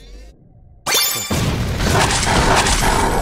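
A burst of blows and crunches rings out as an enemy is destroyed.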